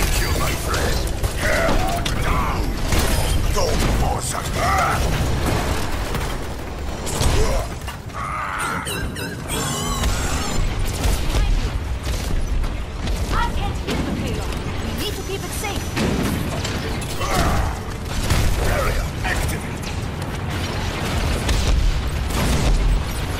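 Heavy gunfire rattles in rapid bursts.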